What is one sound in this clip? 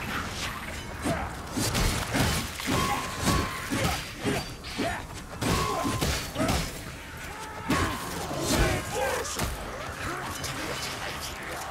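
Weapons strike in quick, heavy blows.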